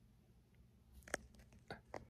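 A middle-aged man speaks close up with animation.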